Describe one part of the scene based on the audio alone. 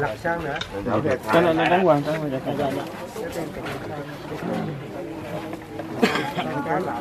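A crowd of mourners murmurs and talks outdoors.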